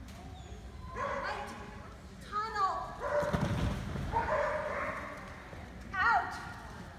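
A woman calls out loudly to a dog in a large echoing hall.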